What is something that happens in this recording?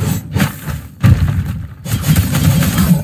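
A deep blast booms.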